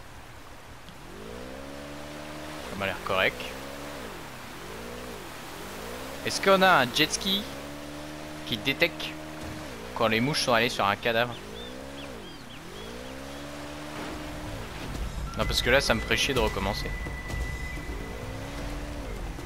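A jet ski engine revs up and down over and over.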